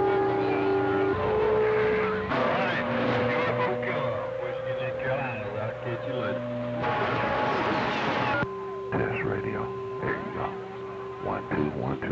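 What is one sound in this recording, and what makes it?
A radio receiver hisses and crackles with static.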